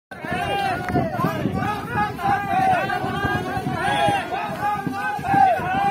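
A group of men chant loudly together close by.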